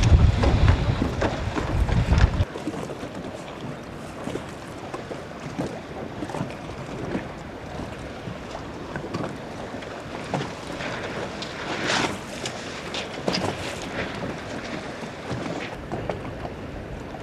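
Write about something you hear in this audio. Water splashes against a sailboat's hull.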